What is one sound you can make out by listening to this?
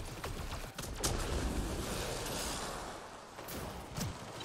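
A sci-fi energy blast whooshes and booms.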